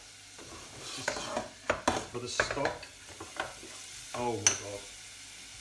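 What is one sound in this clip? Metal pans clatter and knock on a stove.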